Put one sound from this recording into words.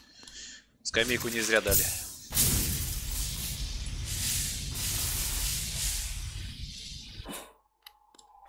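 Game sound effects whoosh and clash loudly.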